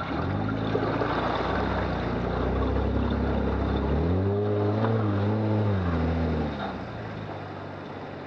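An engine drones nearby and revs higher before easing off.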